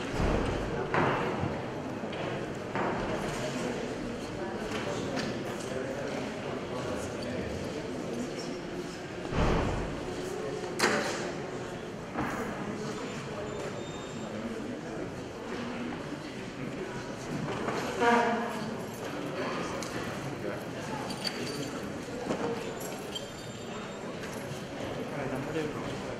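A congregation murmurs and chatters in a large echoing hall.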